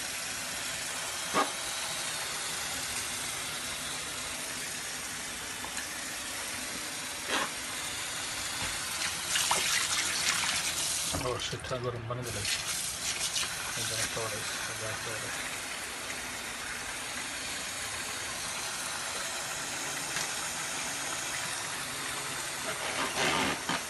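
Tap water runs steadily into a full sink.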